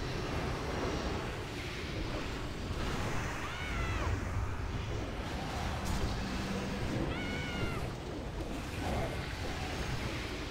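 Spell effects and weapon hits clash and whoosh in a busy fantasy battle.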